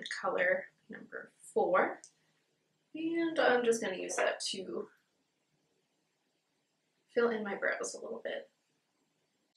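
A young woman talks calmly and close to a microphone, in short bursts.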